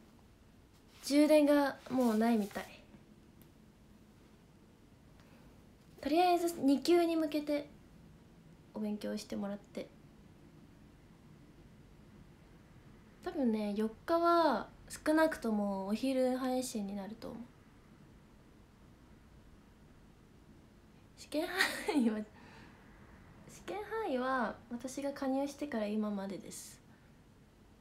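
A young woman talks softly and cheerfully close to a microphone, in short bursts with pauses.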